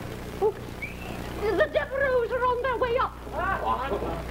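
An older woman speaks calmly.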